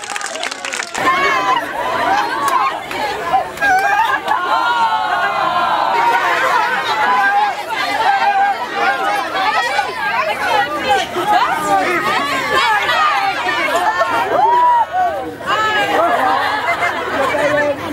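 A crowd of young people chatters and shouts nearby outdoors.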